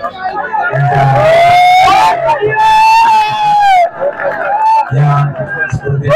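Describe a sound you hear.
A large crowd cheers and shouts loudly in a big hall.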